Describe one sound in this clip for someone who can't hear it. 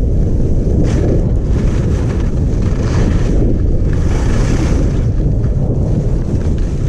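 Wind rushes loudly past as a skier speeds downhill.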